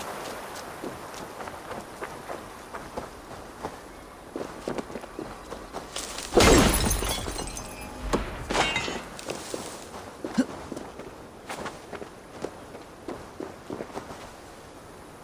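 Footsteps crunch quickly over dry grass and rock.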